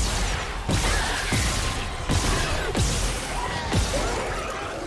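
A futuristic weapon fires in sharp repeated shots.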